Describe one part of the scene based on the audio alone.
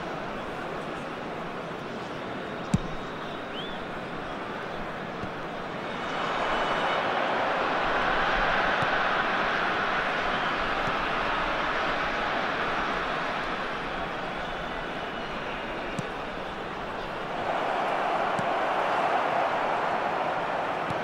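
A stadium crowd roars and murmurs steadily, swelling at times.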